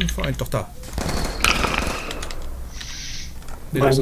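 A rifle fires several quick shots.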